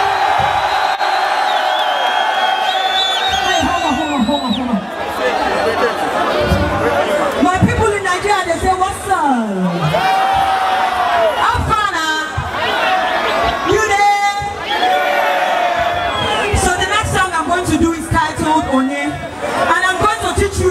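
Loud music plays through large loudspeakers outdoors.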